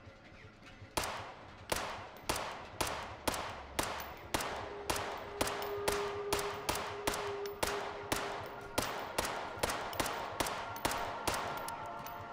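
A pistol fires shot after shot, each bang echoing.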